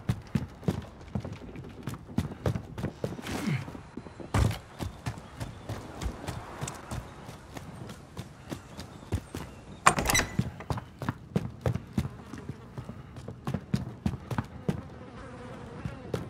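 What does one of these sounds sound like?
Footsteps thud.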